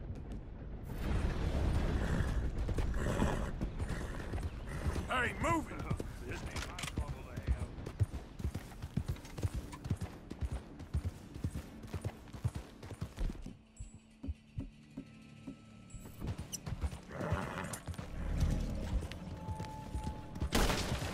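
A horse's hooves thud steadily on the ground.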